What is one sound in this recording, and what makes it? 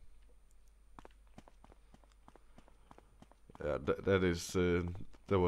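Footsteps tread slowly on a hard floor.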